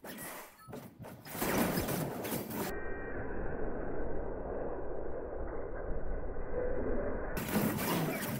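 Game spell effects whoosh, crackle and thud in a busy fight.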